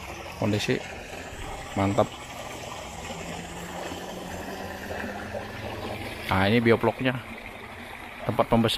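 Water gushes from pipes and splashes into a pool.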